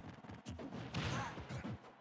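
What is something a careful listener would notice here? Punches and kicks land with sharp hits.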